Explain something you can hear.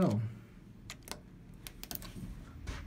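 A lift button clicks as it is pressed.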